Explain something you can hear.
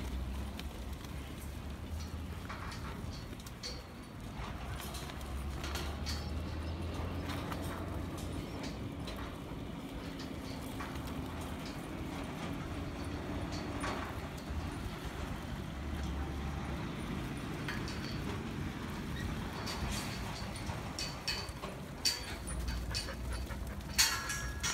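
Outdoors, wind rumbles past.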